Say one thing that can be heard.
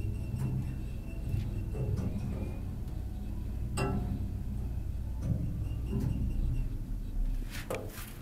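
An elevator hums and rattles steadily as it moves.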